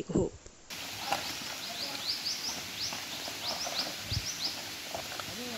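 Birds chirp in the forest.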